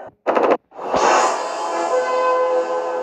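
A short triumphant jingle plays.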